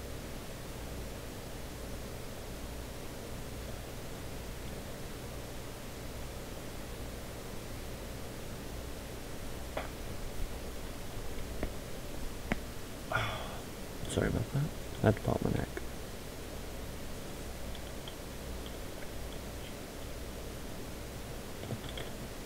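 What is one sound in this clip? Footsteps tread steadily over soft ground.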